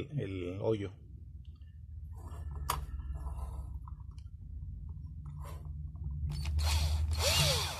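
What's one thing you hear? An electric drill whirs steadily as it bores into metal.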